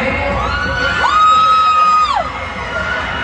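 A young woman in the crowd lets out a long, high cheer.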